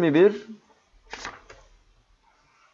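A book page rustles as it is turned.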